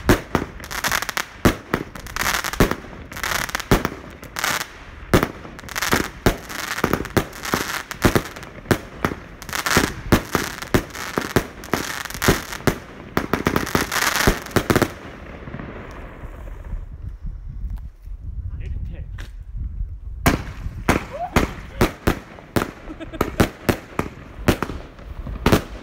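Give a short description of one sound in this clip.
Fireworks explode with loud bangs.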